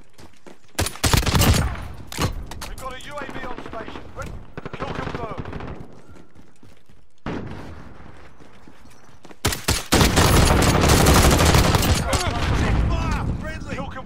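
Rifle shots ring out in quick bursts.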